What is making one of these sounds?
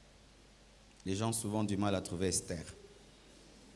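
A middle-aged man speaks slowly into a microphone, heard through loudspeakers in a large echoing hall.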